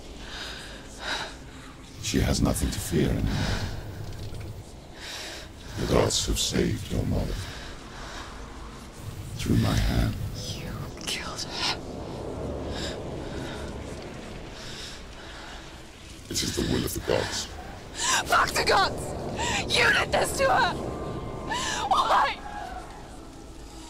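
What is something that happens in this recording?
A young woman speaks intensely and close.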